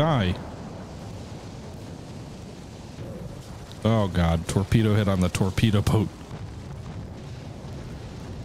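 Naval guns boom and shells explode.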